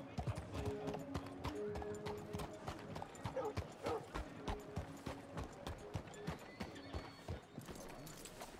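Hooves clop steadily on a hard street.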